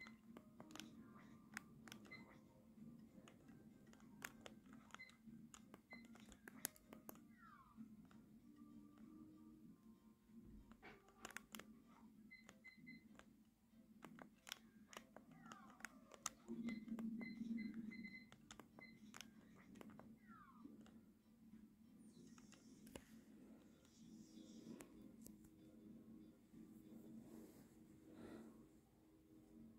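A video game plays music through a television speaker.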